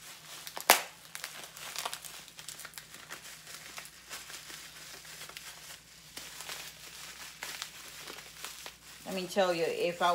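Paper rustles as a woman handles it.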